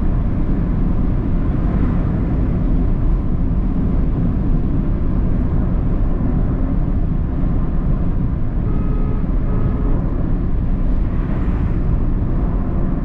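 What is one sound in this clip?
A car drives along an asphalt road, heard from inside with a low, steady rumble.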